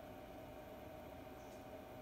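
Oil pours from a bottle into a pan.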